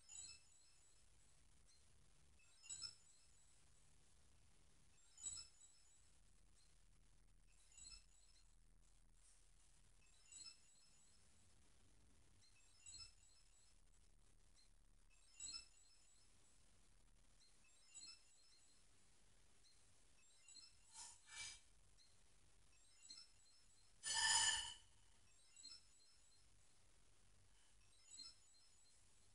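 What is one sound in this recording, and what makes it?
A television gives a short, high electronic chime again and again, about every few seconds.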